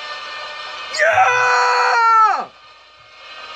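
A giant monster roars loudly with a long, rising and falling cry.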